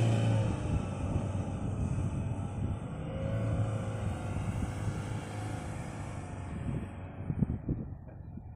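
A pickup truck engine revs hard close by.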